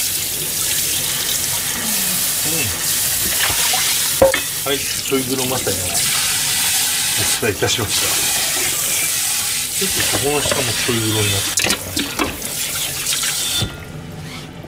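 Hands rinse and clatter metal bowls under running water.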